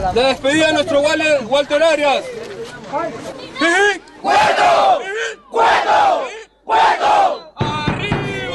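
A crowd of young men chants and shouts loudly outdoors.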